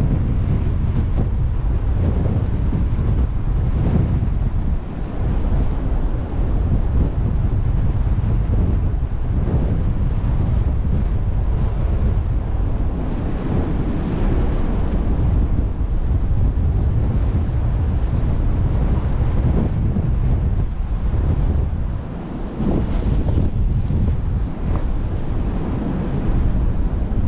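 Water rushes along a moving ship's hull.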